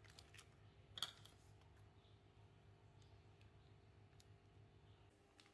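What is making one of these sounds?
Scissors snip through soft dough.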